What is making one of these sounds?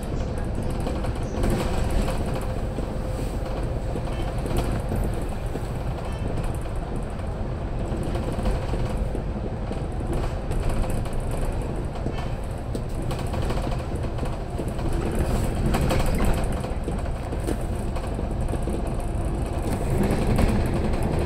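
Tyres hum on the road surface.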